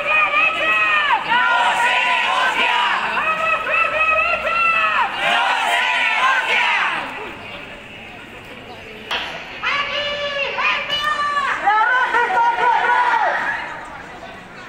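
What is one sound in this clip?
A crowd of young people chants loudly together outdoors.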